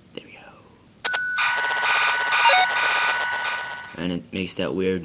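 An old computer plays a loud, buzzing, warbling loading tone.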